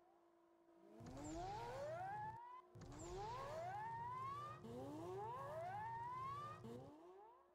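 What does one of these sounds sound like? Exhaust flames roar and crackle from a car.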